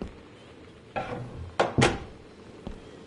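A wooden door creaks open and bumps.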